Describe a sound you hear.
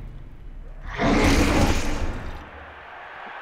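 A heavy armoured player crashes to the ground with a thud.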